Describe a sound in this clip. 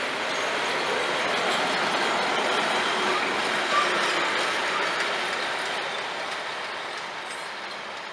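A train rolls steadily along the tracks, its noise slowly fading.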